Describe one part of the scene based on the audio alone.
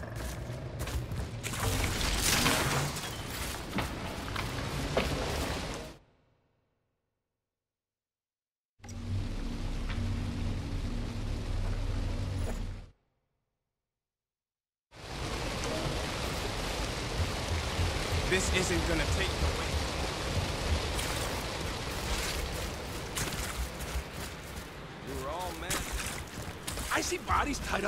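Footsteps crunch over rough ground.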